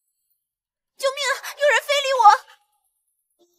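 A young woman exclaims in a high, startled voice.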